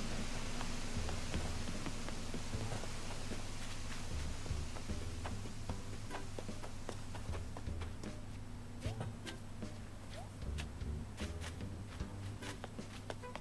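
Soft footsteps patter quickly on grass.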